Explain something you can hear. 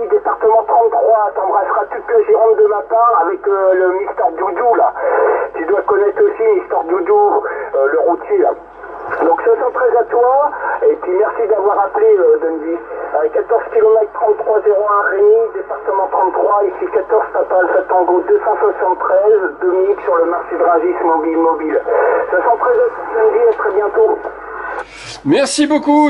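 A man talks through a crackly radio loudspeaker.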